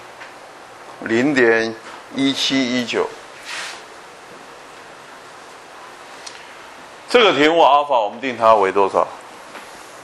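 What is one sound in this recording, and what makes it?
An elderly man speaks through a microphone in short bursts, calmly explaining.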